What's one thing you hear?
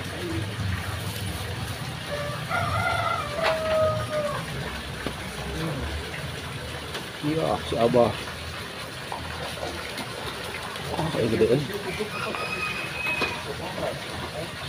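Water pours steadily from a pipe into a pond.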